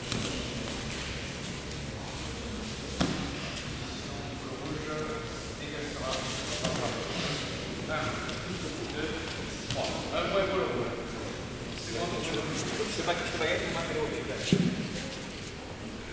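Two wrestlers scuffle and thump on a padded mat.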